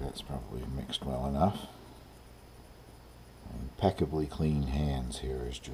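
A spoon scrapes against the side of a bowl.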